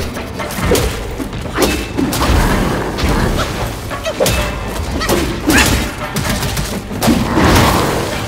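A large beast roars and snarls.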